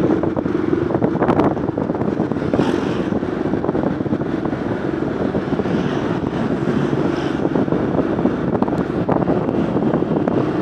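A small motor scooter engine hums while riding along an asphalt road.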